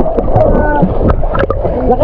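A child splashes water with a hand.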